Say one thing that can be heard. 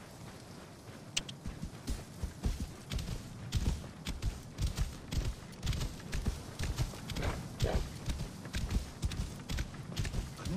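Camel hooves thud steadily on soft sand.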